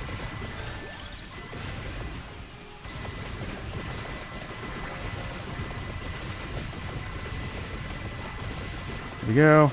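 Game sound effects crackle and pop rapidly and constantly.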